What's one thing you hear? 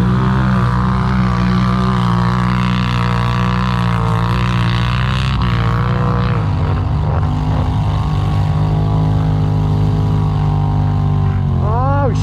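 An off-road vehicle engine runs steadily close by, revving up near the end.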